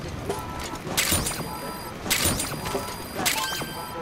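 A short electronic chime sounds several times.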